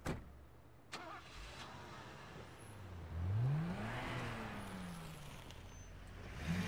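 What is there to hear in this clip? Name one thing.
A car engine revs as the car pulls away.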